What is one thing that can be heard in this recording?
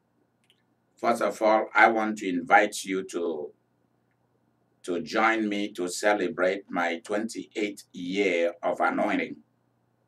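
A middle-aged man speaks calmly and closely into a microphone.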